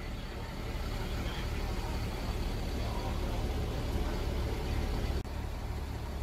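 A fire engine idles with a low steady rumble.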